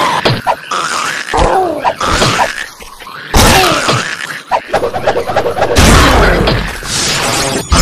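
A sword slashes and strikes with sharp metallic hits.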